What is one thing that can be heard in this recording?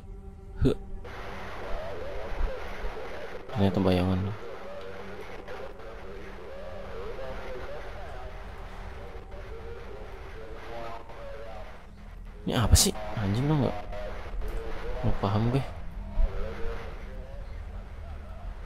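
A handheld radio hisses and crackles with static.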